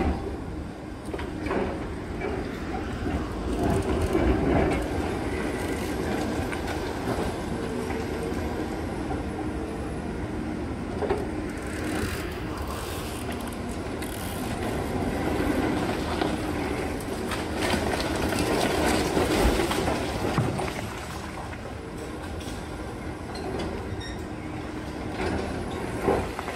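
A demolition excavator's diesel engine rumbles under load.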